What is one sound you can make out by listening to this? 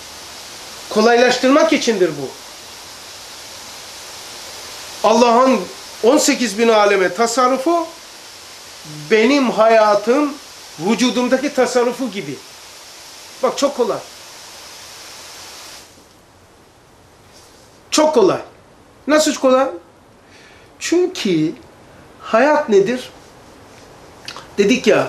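An elderly man speaks with animation into a close microphone, pausing between phrases.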